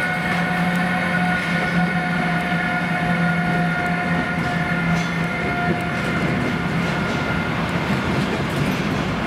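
Freight train wheels rumble and clack over the rails.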